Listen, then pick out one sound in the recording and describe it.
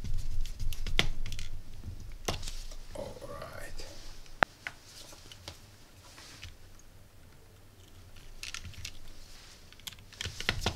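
A metal tool clicks and scrapes against a small plastic terminal block.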